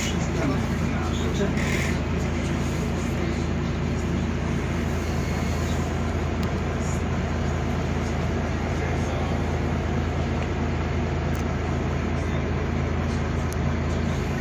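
A bus engine hums steadily inside a moving bus.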